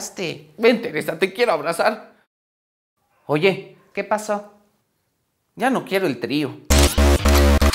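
A young man speaks with animation into a clip-on microphone.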